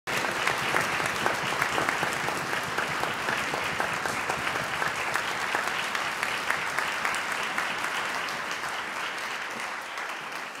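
An audience applauds loudly in a large hall, then the applause slowly fades.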